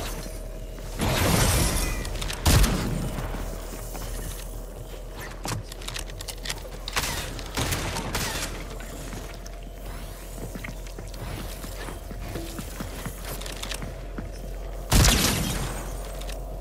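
Gunshots blast loudly a few times.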